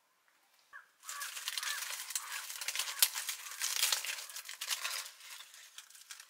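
Dried fish rustle and crackle as hands pile them up.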